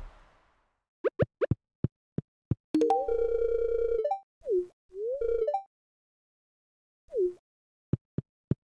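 Short chiming blips sound.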